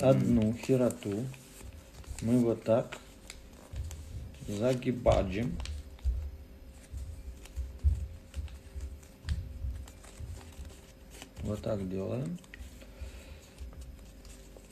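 Paper rustles and crinkles as it is folded.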